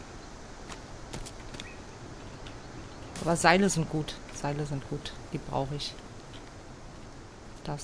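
Footsteps crunch on dry forest ground.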